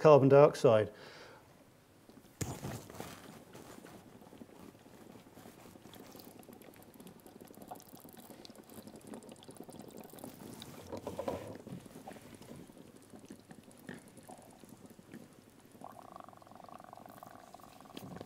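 Liquid pours and trickles into a container.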